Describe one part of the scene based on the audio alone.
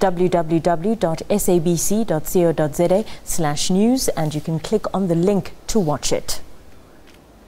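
A woman reads out the news calmly into a microphone.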